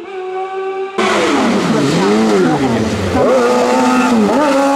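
A racing car engine passes close by with a sudden loud whoosh.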